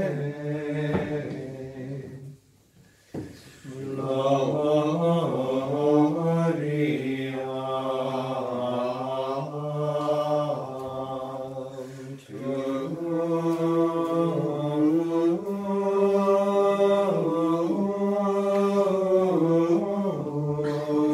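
Men sing a slow chant together, echoing in a large hall.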